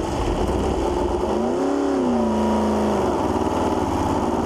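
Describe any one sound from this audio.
A racing car engine revs, rising and falling in pitch.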